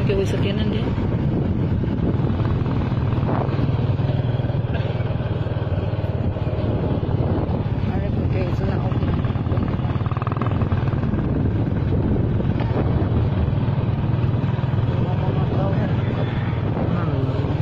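A motorcycle engine hums as it rides along a road.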